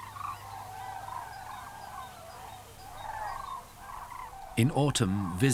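A flock of birds calls continuously in the distance.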